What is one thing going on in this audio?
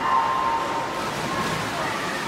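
Swimmers splash steadily through the water in an echoing hall.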